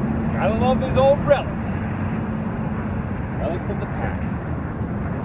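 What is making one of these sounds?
A man speaks briefly nearby.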